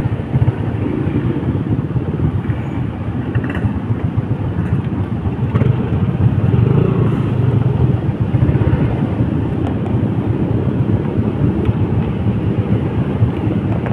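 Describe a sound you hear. A motor scooter engine idles steadily, with a low rumble.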